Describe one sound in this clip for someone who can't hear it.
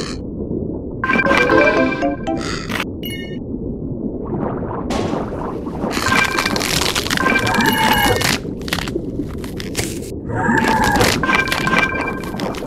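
Video game sound effects of a shark crunching on prey play.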